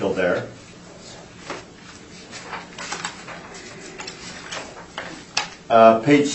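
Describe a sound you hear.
Papers rustle on a table.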